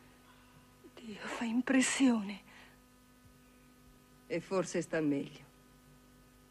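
A woman speaks calmly and close by.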